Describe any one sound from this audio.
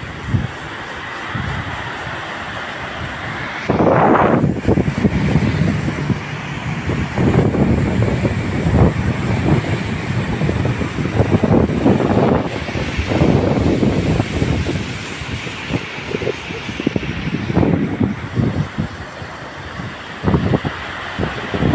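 A river rushes steadily over rocks below.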